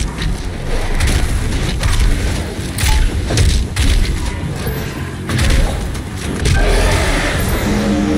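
Guns fire in rapid, booming bursts.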